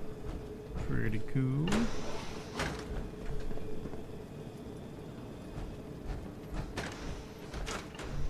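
A heavy metal door slides open.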